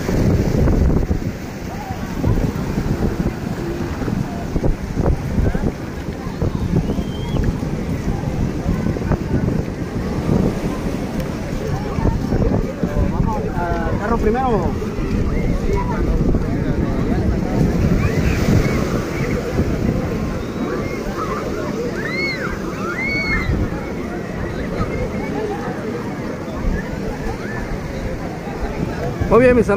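Wind buffets loudly outdoors throughout.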